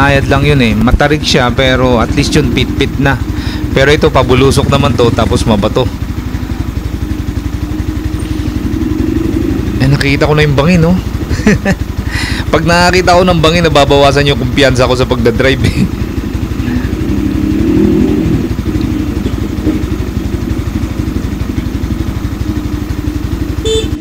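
A motorcycle engine runs steadily at low speed.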